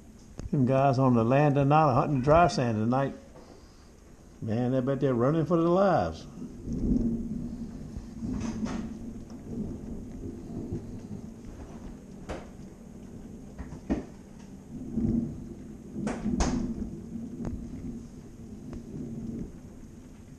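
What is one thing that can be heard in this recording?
Rain patters on window glass.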